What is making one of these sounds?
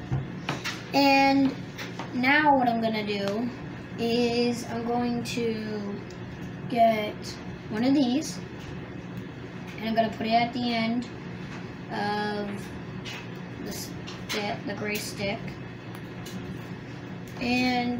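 A child talks with animation close by.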